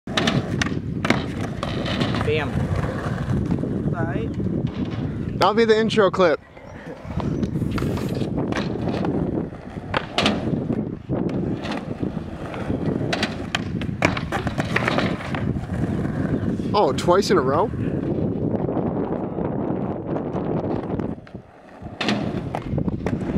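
A skateboard clacks sharply against the ground during tricks.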